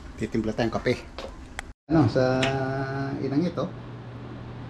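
A middle-aged man talks casually close by.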